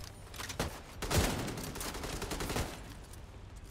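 Rifle shots ring out in quick bursts.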